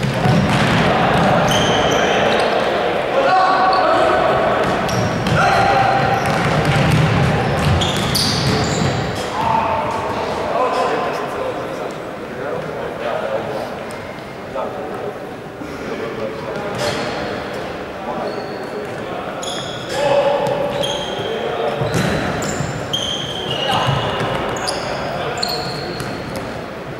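Sneakers squeak sharply in a large echoing hall.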